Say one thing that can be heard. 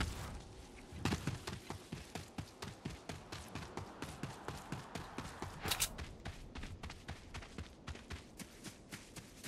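Running footsteps thud on grass.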